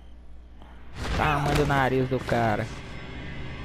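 A man grunts while struggling.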